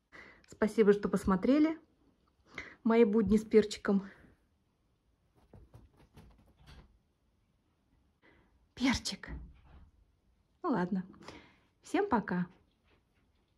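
A small dog whines and yelps in short bursts close by.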